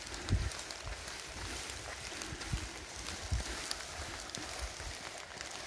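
Light rain patters steadily outdoors.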